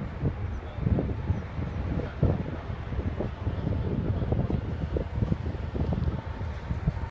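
Strong wind buffets and rumbles loudly outdoors.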